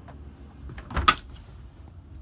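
A refrigerator door thumps shut.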